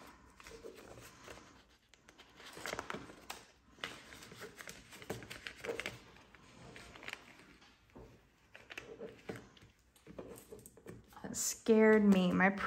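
Paper banknotes rustle and crinkle as they are handled.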